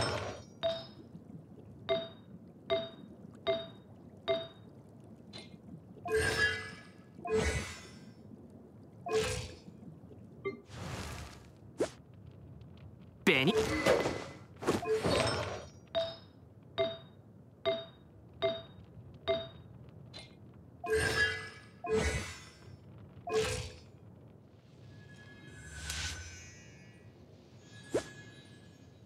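Soft menu clicks chime again and again as selections change.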